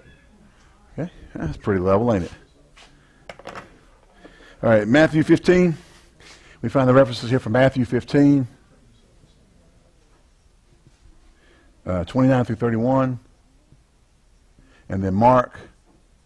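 A man speaks through a clip-on microphone, pausing between phrases.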